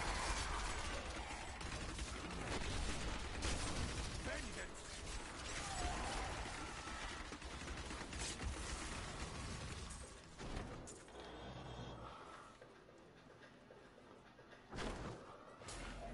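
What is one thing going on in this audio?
Spell blasts and blows crash in a fantasy video game battle.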